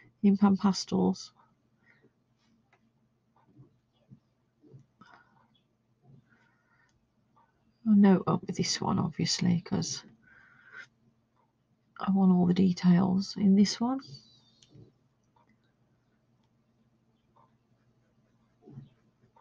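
A soft tool rubs lightly across paper.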